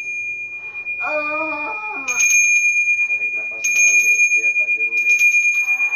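A man chants in a low voice.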